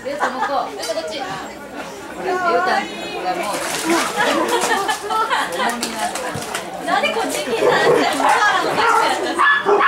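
A dog paddles and splashes in water.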